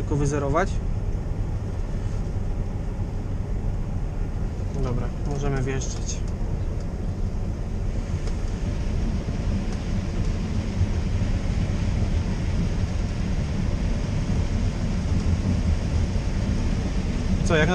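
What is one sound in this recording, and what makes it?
A combine harvester engine drones steadily, heard from inside the cab.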